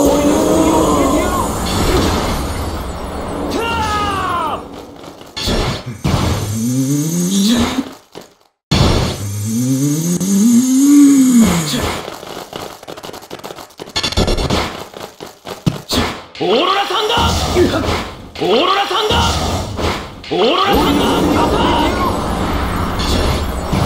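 Icy energy blasts whoosh and crackle.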